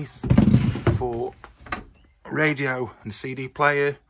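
A wooden cabinet door creaks open.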